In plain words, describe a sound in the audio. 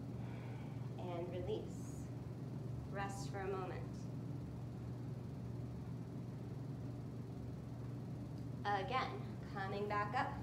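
A young woman speaks calmly and close by, in short phrases.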